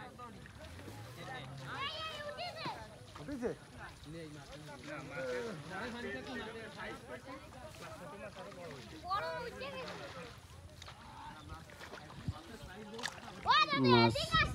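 Water splashes softly as a woman wades through it.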